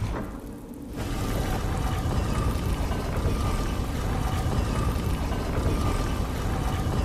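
A heavy stone door rumbles as it slides open.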